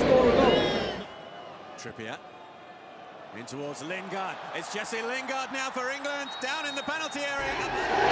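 A stadium crowd chants and roars from afar.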